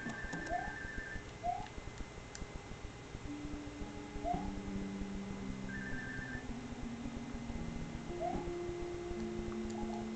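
Retro video game music plays in a steady tune.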